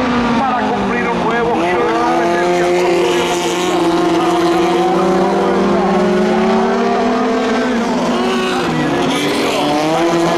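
Racing car engines roar loudly, rising and falling in pitch.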